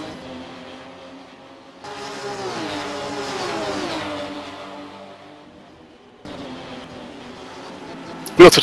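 Racing car engines roar and whine as they shift through the gears.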